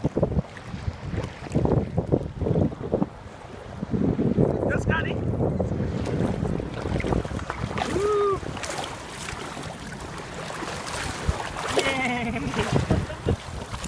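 Water splashes as a dog paddles and wades.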